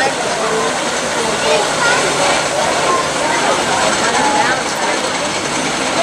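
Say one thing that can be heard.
A roller coaster train rumbles and clatters along a wooden track.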